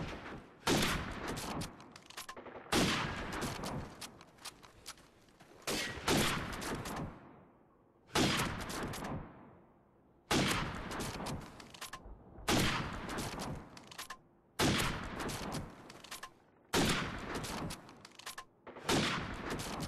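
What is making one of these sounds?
Sniper rifle shots ring out loudly, one every two seconds or so.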